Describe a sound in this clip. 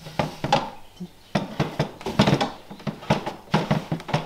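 A tray scrapes as it slides into a metal rack.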